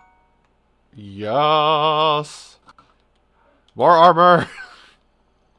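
A young man sings long, wavering notes close to a microphone.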